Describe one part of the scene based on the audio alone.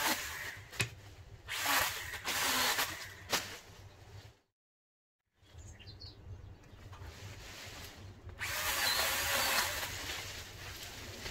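Leafy branches rustle and swish as they are pulled.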